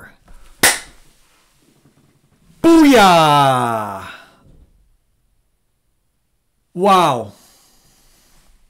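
A man exclaims loudly and with excitement into a close microphone.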